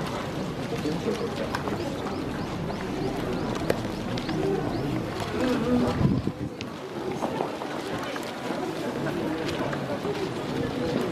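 Horse hooves clop softly on the ground as horses walk past.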